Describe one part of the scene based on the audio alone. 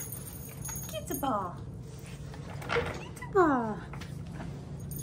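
Puppies whimper and yelp in high, sliding cries.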